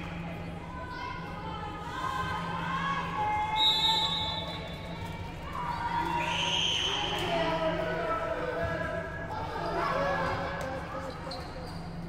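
Young women call out to each other in a large echoing hall.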